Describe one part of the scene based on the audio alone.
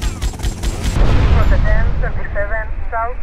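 A car explodes with a loud boom.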